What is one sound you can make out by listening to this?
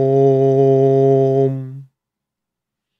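A man hums a long, steady low tone close to a microphone.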